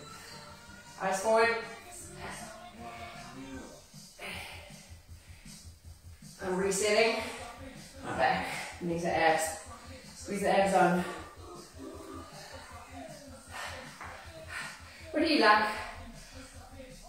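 A woman grunts and breathes hard with effort, close by.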